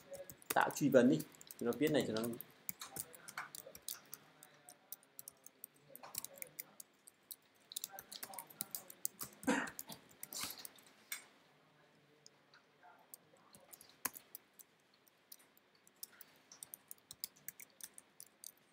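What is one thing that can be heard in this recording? Keys on a computer keyboard click in quick bursts.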